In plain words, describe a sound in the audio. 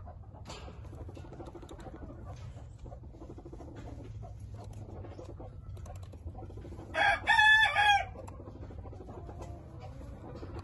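A rooster scratches and pecks in dry straw.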